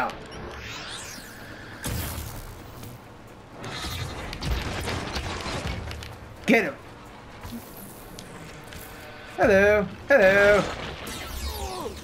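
Energy blasts crackle and whoosh in bursts.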